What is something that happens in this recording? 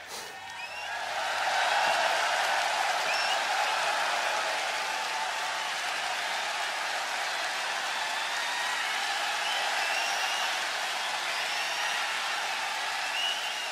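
A large crowd cheers and screams, heard through a speaker.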